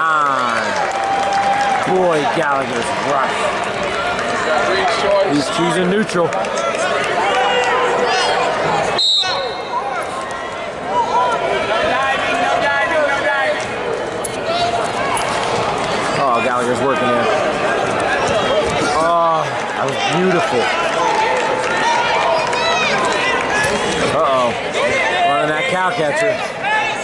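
A crowd of spectators talks and shouts throughout, echoing in a large hall.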